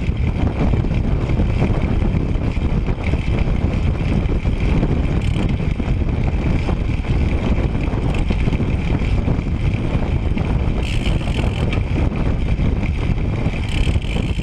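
Wind buffets loudly and steadily against a moving bicycle.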